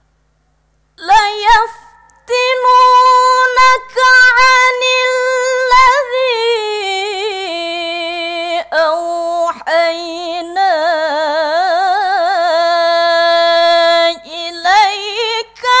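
A woman chants a long melodic recitation into a microphone, her voice rising and wavering.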